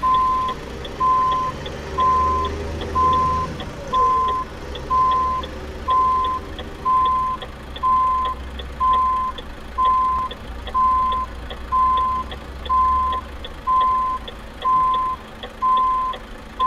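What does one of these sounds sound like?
A truck's reversing alarm beeps steadily.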